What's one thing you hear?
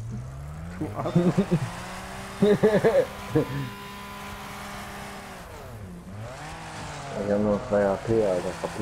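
A car engine drones and revs, its pitch dipping and rising.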